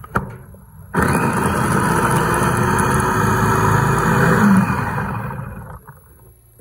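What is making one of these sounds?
An electric food chopper whirs loudly as its blades spin.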